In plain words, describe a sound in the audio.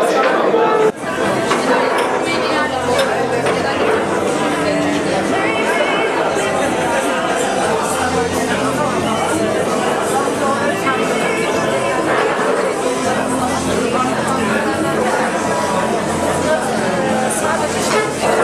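A crowd of adults murmurs and chats nearby.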